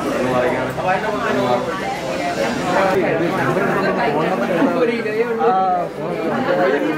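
Several people chatter and murmur close by in a busy room.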